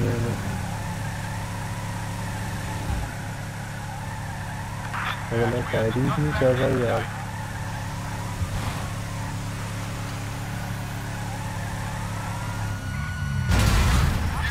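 A pickup truck's engine drones steadily on a road.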